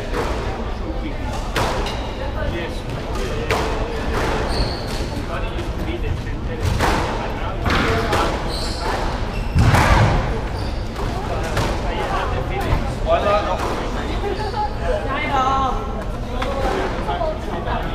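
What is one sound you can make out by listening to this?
A squash ball smacks off racquets and walls in a hollow, echoing court.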